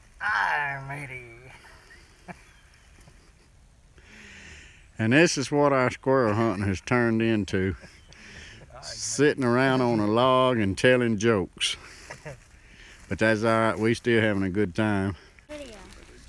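Men talk calmly close by, outdoors.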